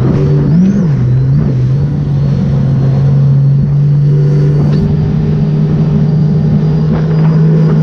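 Water sprays and splashes behind a jet ski.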